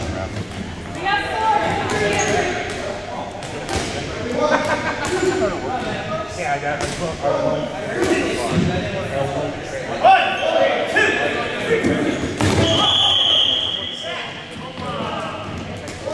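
Players shout and call out across a large echoing gym.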